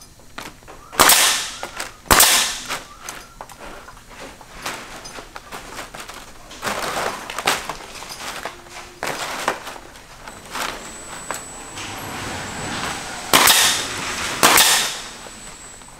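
A pneumatic nail gun fires with sharp bangs and bursts of air.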